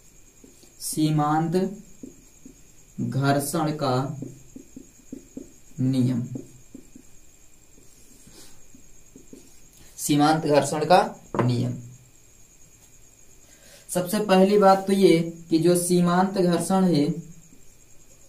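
A man speaks calmly and clearly, close by, in short explaining phrases.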